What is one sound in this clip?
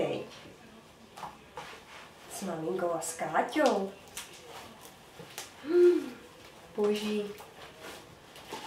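Slime squelches and stretches between hands.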